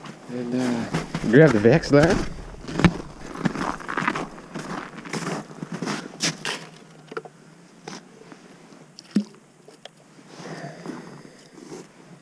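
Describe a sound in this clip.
Footsteps crunch on packed snow.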